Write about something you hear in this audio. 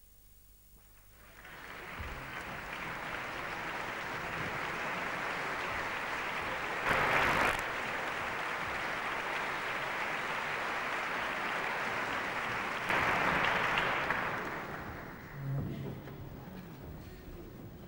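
A large audience applauds in an echoing concert hall.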